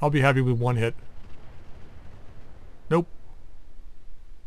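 Distant weapons fire booms and rumbles.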